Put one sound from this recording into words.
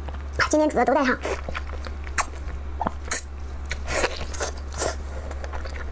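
Soft food squishes as hands tear it apart.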